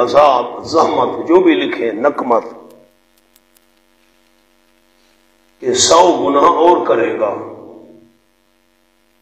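A man recites in a chanting voice through a microphone, echoing in a large hall.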